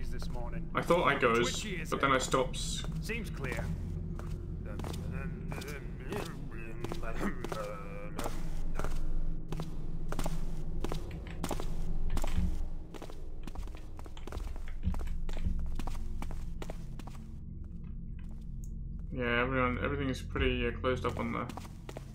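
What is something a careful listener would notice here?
Footsteps tread steadily on cobblestones.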